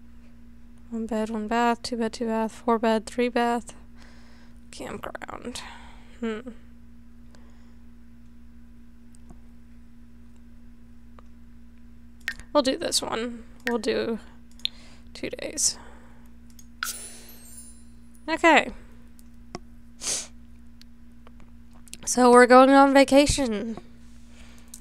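A young girl talks calmly into a close microphone, in short bursts.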